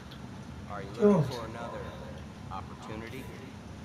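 A man speaks calmly, nearby.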